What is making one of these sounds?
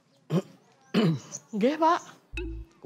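A woman answers cheerfully from nearby.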